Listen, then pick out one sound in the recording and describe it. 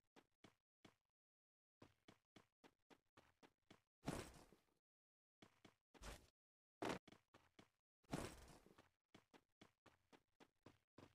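Footsteps patter quickly on grass and hard ground.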